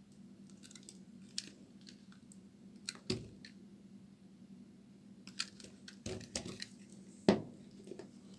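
A knife scrapes and cuts into a bar of soap.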